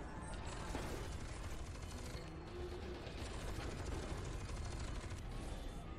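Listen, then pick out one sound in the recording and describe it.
Heavy guns fire rapid shots with a loud roar.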